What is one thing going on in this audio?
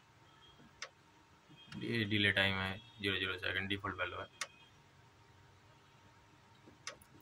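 A finger clicks plastic buttons on a control panel.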